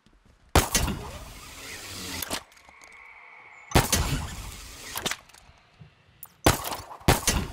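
A grappling hook fires with a sharp metallic bang.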